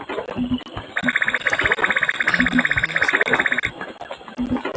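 A rapid electronic ticking counts up points.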